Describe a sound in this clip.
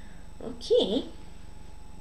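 A young boy says a few words into a microphone.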